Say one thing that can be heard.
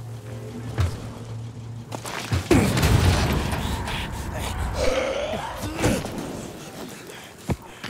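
Footsteps thud and scrape on the ground while running.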